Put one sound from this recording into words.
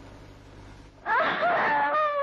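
A young woman pleads tearfully in a raised voice.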